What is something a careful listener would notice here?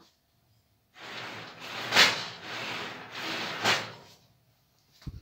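Objects rustle and shift as they are handled.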